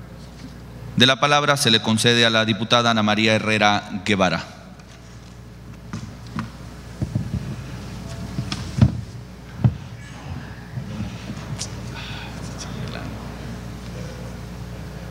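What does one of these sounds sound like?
A man speaks into a microphone in a large, echoing hall.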